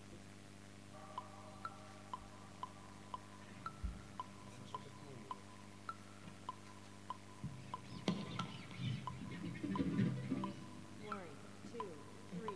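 An electric guitar plucks quiet single notes.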